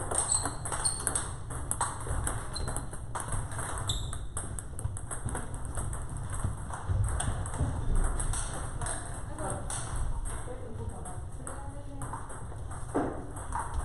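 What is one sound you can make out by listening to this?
Table tennis balls clack off paddles and bounce on tables in a large echoing hall.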